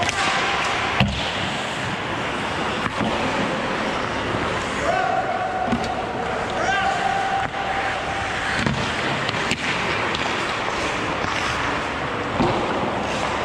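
Hockey sticks clack against the ice and a puck.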